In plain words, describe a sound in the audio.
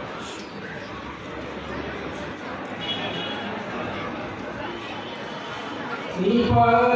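A man speaks over a loudspeaker.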